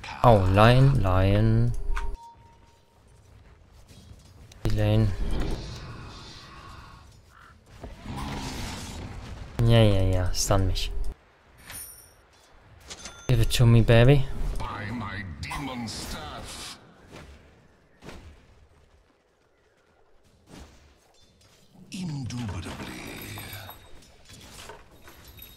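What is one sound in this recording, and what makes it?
A young man talks with animation into a nearby microphone, in short bursts.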